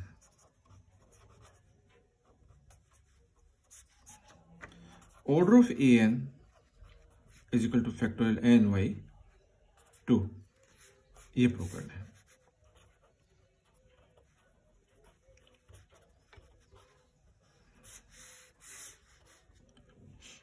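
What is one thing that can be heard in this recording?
A pen scratches on paper in short strokes.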